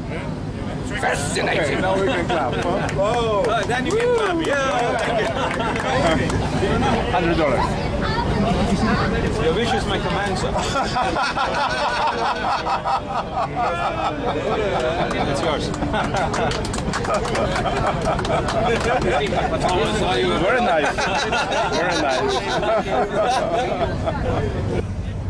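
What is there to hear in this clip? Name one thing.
A group of men laugh loudly together.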